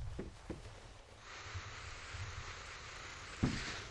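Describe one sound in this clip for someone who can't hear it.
Hands and feet knock on a wooden ladder.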